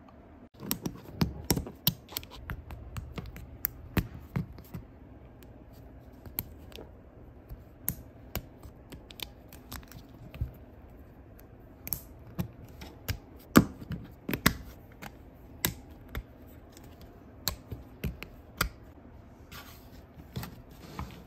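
Plastic building pieces click and snap together, close by.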